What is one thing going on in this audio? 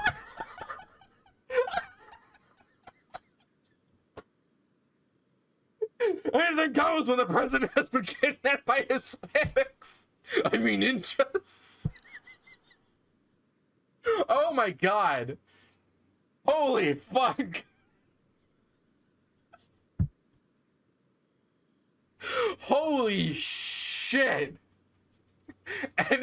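A man talks with animation close to a microphone, in bursts with pauses.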